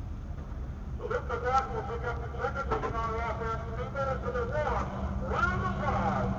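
Men talk outdoors, muffled through a car's windshield.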